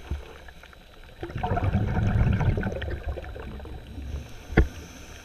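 Water swirls and rumbles, heard muffled from underwater.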